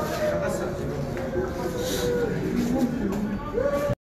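An elderly man sobs.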